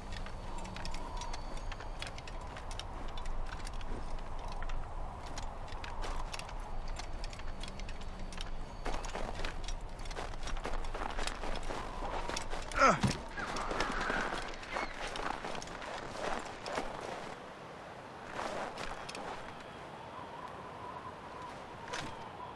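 Footsteps run quickly over snow and dirt.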